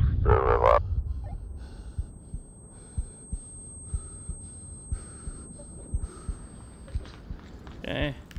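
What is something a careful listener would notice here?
A high, thin ringing tone holds steady for several seconds, then stops.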